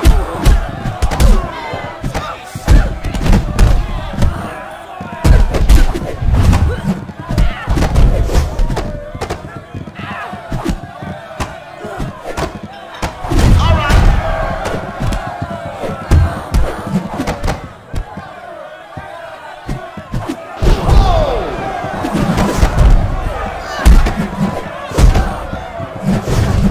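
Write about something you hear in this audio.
Women grunt and cry out as blows land.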